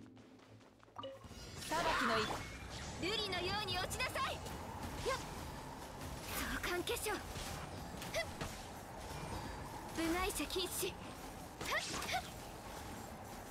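Magic blasts and heavy impacts crash and whoosh in a fast fight.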